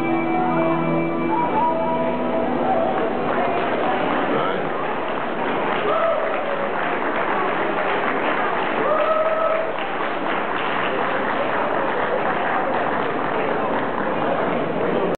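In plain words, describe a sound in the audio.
A band plays lively folk music through loudspeakers in a large echoing hall.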